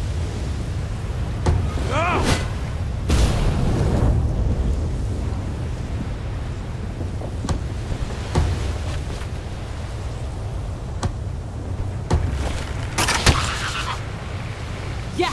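Waves lap softly against a shore.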